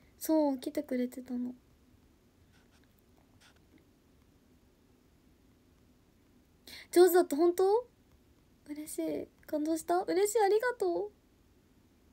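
A young woman talks softly and casually, close to a microphone, in short bursts with pauses.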